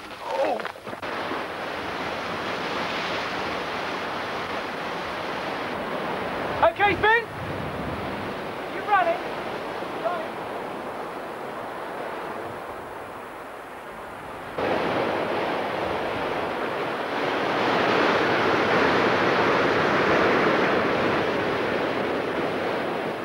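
Waves crash and roar on a rocky shore.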